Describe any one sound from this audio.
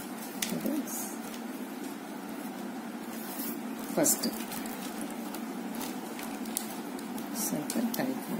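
Plastic strips rustle and scrape as hands weave them together.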